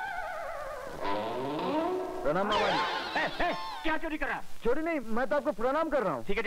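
A middle-aged man shouts with agitation, close by.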